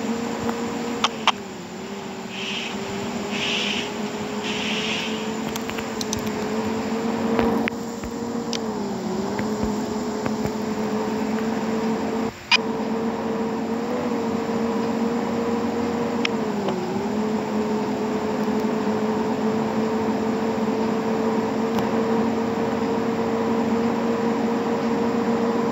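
A bus engine hums steadily, dipping briefly as gears change.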